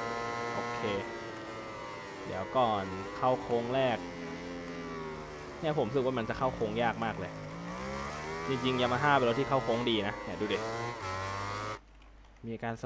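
A motorcycle engine drops in pitch as it slows for a bend.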